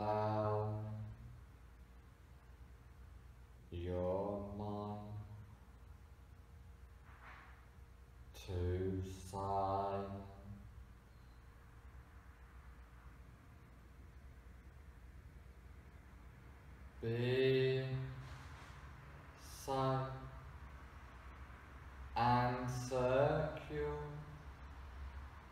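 A man speaks calmly and slowly, with long pauses, close by.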